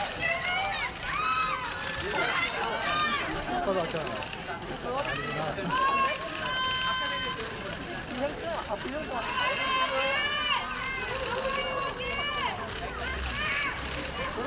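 A crowd of young women screams and shouts excitedly nearby, outdoors.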